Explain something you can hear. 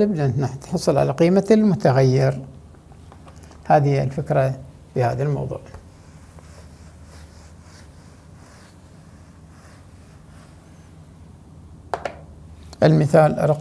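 An older man speaks calmly and clearly into a nearby microphone, in short bursts with pauses.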